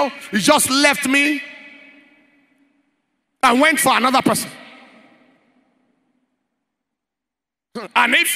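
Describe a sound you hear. A man preaches forcefully into a microphone in a large echoing hall, with long pauses between phrases.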